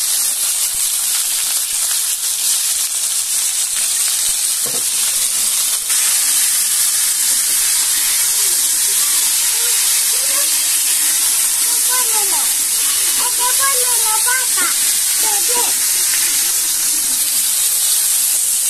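Food sizzles steadily in hot oil in a pan.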